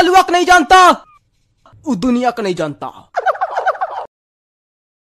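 A young boy speaks loudly with animation, close by.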